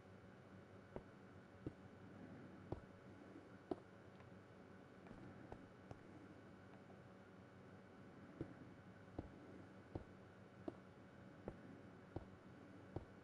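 Footsteps tap steadily on stone blocks.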